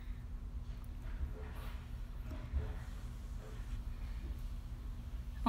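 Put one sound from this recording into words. A young woman speaks casually, close to the microphone.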